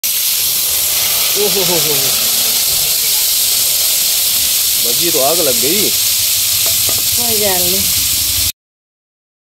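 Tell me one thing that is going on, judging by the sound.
Hot food sizzles and hisses loudly in a pan.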